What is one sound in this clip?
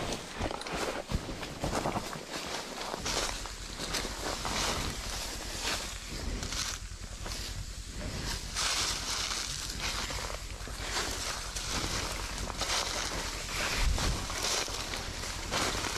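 Footsteps crunch through dry leaves.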